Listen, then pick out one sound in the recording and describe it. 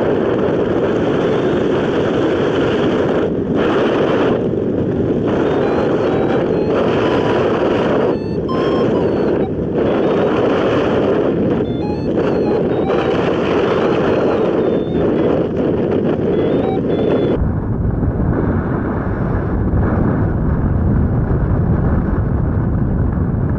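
Wind roars loudly past in flight.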